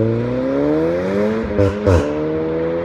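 A car exhaust pops and crackles.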